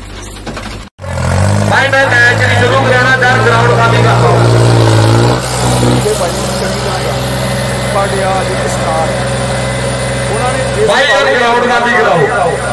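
A tractor engine roars loudly close by.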